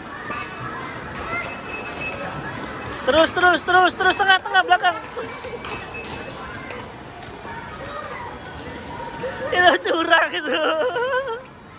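A busy arcade hall murmurs with background chatter and game sounds.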